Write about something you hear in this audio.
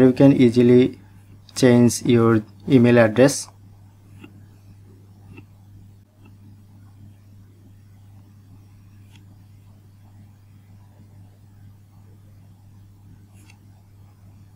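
Fingers tap lightly on a phone's touchscreen.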